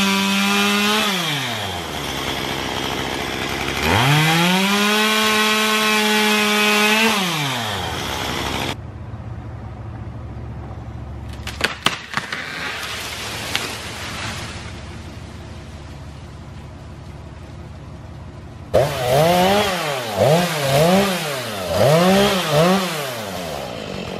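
A chainsaw revs and whines up close.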